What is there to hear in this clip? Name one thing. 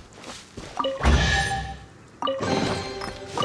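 A treasure chest creaks open with a bright chime.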